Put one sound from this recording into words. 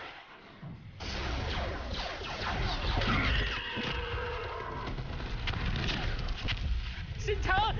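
A large explosion roars.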